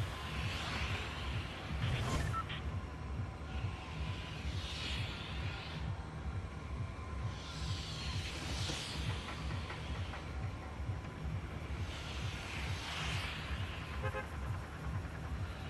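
A low engine drones steadily.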